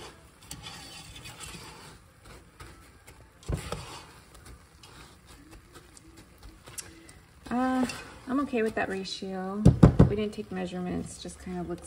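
A spatula stirs and scrapes sticky cereal in a metal pot.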